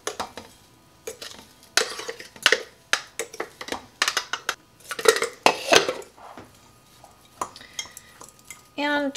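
A spoon clinks and scrapes against a glass jar.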